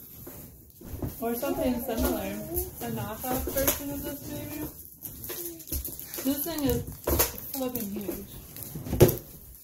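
A young woman talks calmly close by.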